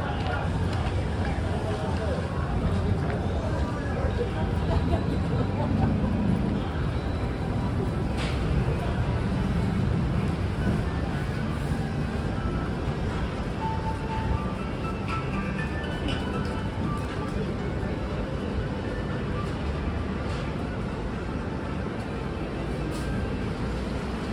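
A busy street hums with low traffic and crowd noise outdoors.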